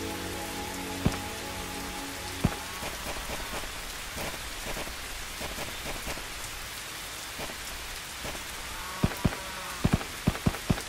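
Blocks thud softly as they are placed, one after another.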